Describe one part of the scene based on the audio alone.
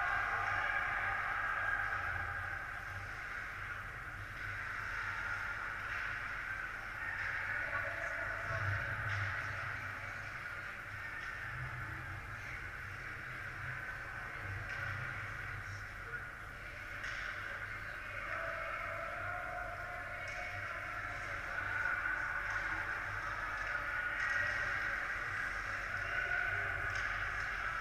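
Skates scrape and hiss across the ice far off, in a large echoing hall.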